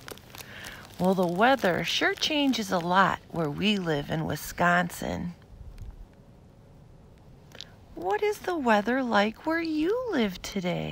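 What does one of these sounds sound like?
A woman talks close to the phone with animation.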